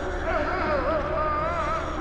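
A creature snarls and shrieks loudly.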